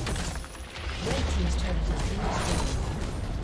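A tower crumbles and explodes.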